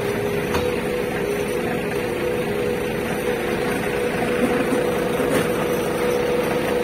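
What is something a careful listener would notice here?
A fire engine's diesel engine idles with a steady low rumble and hum.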